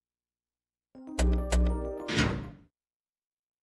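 A menu chime sounds in quick beeps.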